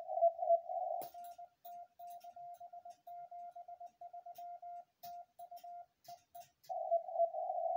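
A telegraph key clicks as a man taps out Morse code.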